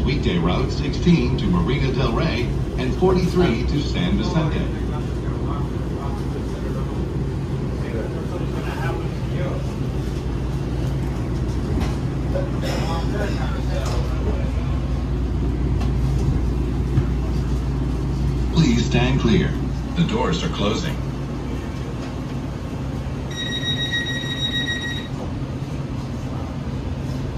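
A train rumbles and hums steadily as it slows into a station.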